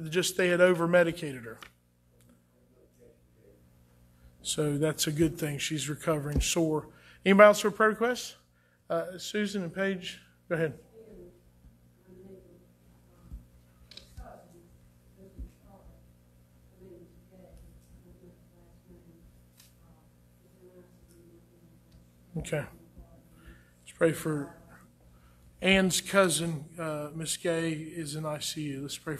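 A man speaks calmly into a microphone, with long pauses, in an echoing room.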